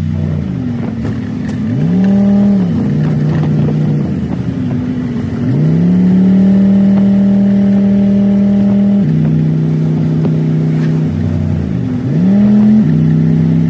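A car engine revs up and drops in pitch with each gear change.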